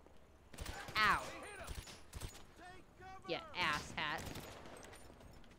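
A young woman talks with animation through a close microphone.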